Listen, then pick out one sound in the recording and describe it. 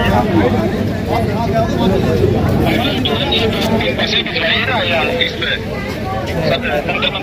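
A crowd of men talk and shout close by, outdoors.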